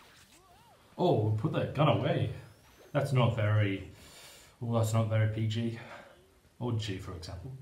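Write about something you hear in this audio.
A young man talks loudly and with animation close to a microphone.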